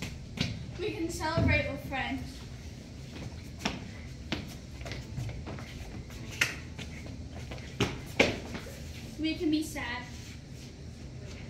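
Young girls talk and laugh nearby in a room with some echo.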